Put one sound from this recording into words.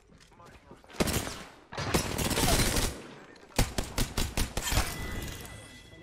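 Gunfire bursts in rapid shots.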